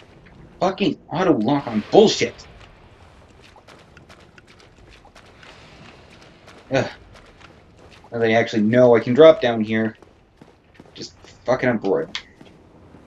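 A young man talks casually into a close microphone, in bursts.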